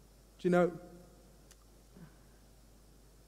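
A man speaks a short word into a headset microphone.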